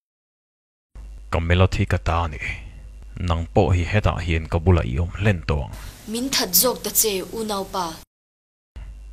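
A woman speaks softly and close.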